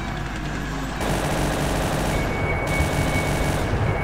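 Heavy twin guns fire in a rapid, loud burst.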